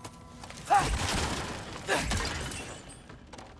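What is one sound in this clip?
Wooden planks and ice crash and tumble down loudly.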